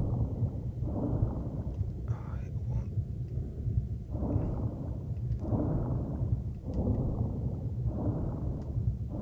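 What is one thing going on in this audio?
Water swishes in regular strokes as a swimmer paddles.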